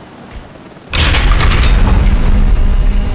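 A heavy metal door slides open with a loud rumble.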